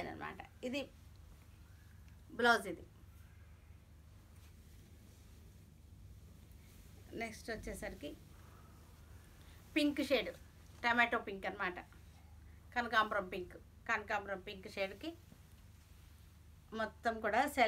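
A middle-aged woman speaks calmly and warmly, close to a microphone.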